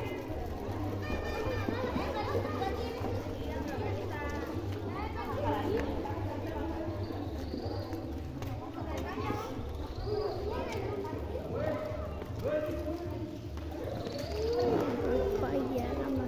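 Many young children chatter and call out close by.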